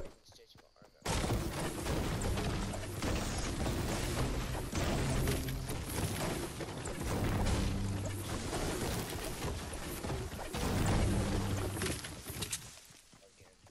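A pickaxe strikes wood again and again with hard knocks.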